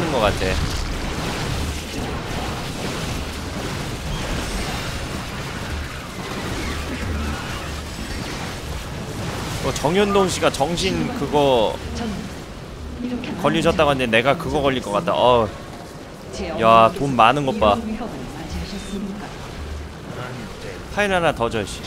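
Energy weapons zap and crackle in a game battle.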